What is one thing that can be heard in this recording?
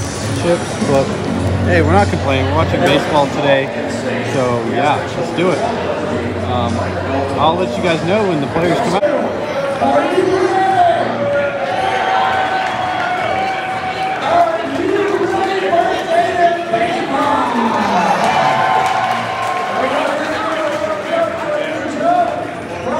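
A crowd of spectators chatters around the stands outdoors.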